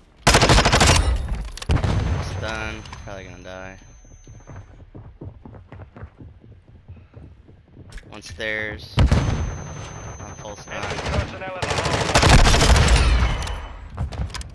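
A rifle fires rapid bursts of shots close by.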